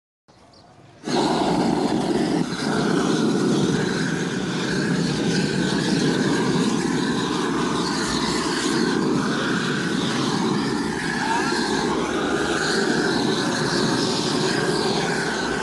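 A gas torch roars steadily up close.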